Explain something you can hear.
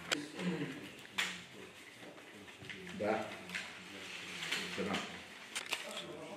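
Paper banknotes rustle and flick as they are counted.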